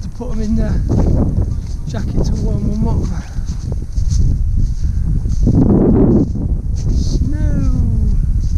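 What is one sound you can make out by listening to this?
Wind gusts across an open hillside.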